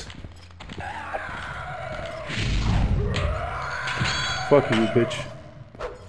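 A fiery spell whooshes and crackles.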